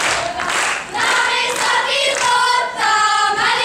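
A group of young women sing together loudly.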